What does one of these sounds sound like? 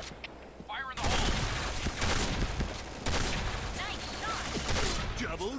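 Gunshots ring out close by in quick bursts.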